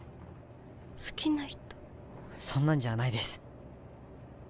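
A young woman speaks quietly and wonderingly, close by.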